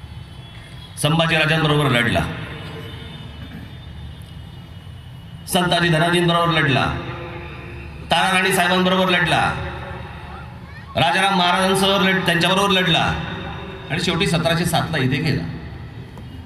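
A man speaks forcefully through loudspeakers outdoors, in short bursts with pauses.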